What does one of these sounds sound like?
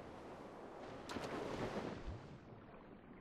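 Water splashes as a body drops into the sea.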